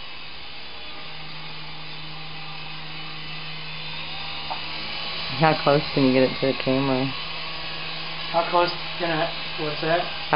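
A toy helicopter's rotor whirs with a steady hum.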